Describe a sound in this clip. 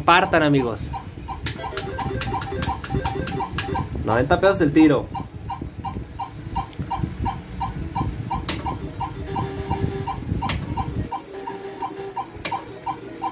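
A slot machine plays a quick, even run of electronic beeps.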